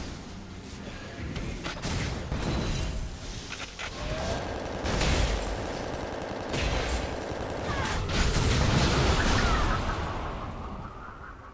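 Spell effects whoosh and crackle in a fast video game fight.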